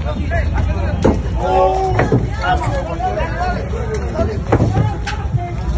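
Metal thuds and scrapes as a vehicle is shoved.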